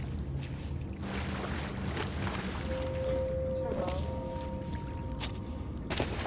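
A small waterfall splashes into a pool.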